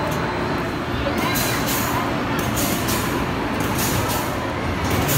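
An amusement ride rumbles and whirs steadily as it spins.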